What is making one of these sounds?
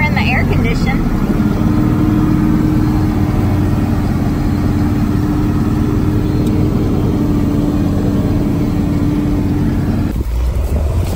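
A tractor engine rumbles steadily from inside the cab.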